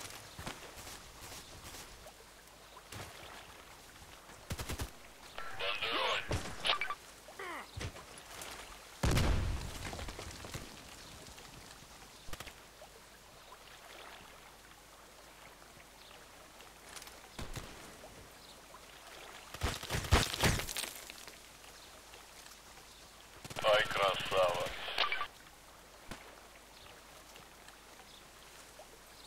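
Footsteps rustle through grass and over rocks.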